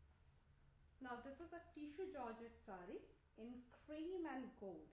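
A woman speaks close by with animation.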